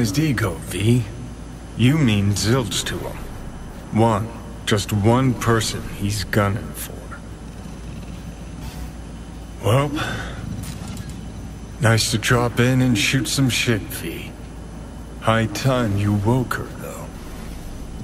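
A man speaks calmly in a low voice, close by.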